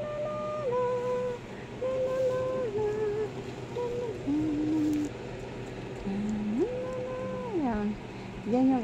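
A middle-aged woman sings softly close by.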